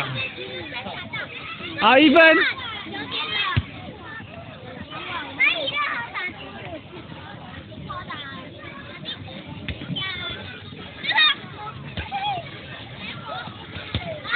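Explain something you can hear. Outdoors, many children chatter in the distance.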